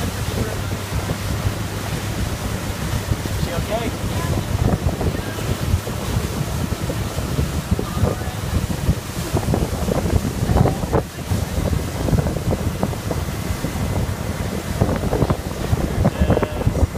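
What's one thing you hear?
A motorboat engine drones steadily.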